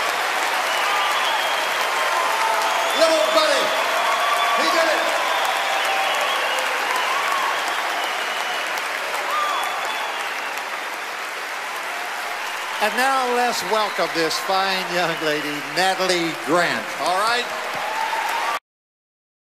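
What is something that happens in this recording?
A large audience applauds loudly in a big echoing hall.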